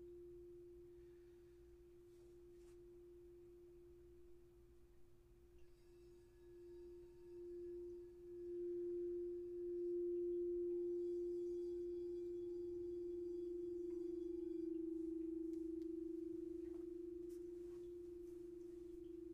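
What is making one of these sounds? A crystal singing bowl hums with a steady, ringing tone that swells and fades.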